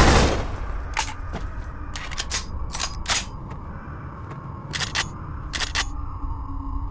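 A rifle fires in short, sharp bursts.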